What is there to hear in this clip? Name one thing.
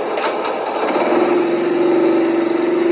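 A motorcycle engine starts and idles steadily.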